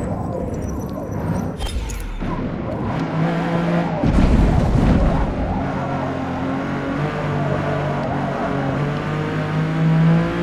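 A racing car engine roars, revving up and down through gear changes.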